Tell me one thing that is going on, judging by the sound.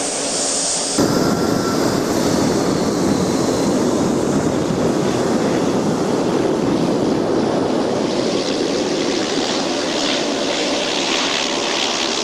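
A turboprop plane's engines roar loudly as it lands and rolls past close by.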